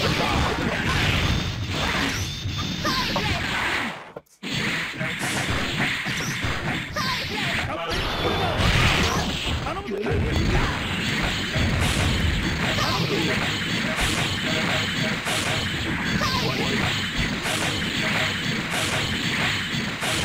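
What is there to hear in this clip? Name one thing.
Punches and energy blasts hit with sharp impacts in quick succession.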